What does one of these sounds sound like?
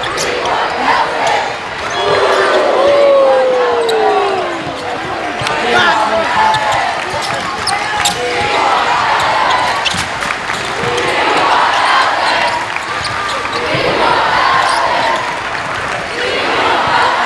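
A large crowd cheers and chatters in a big echoing gym.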